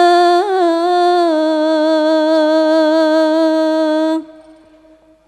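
A group of young women sings a long, held note together through loudspeakers, then stops.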